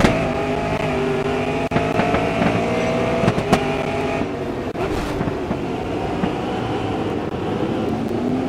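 Another racing car engine roars close by.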